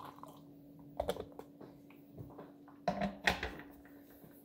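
A lid clinks onto a glass pot.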